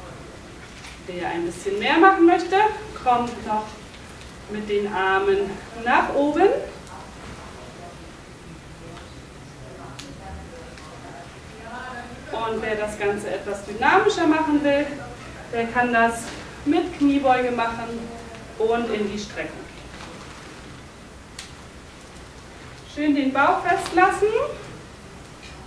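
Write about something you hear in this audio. A woman speaks calmly, in bursts with pauses in between.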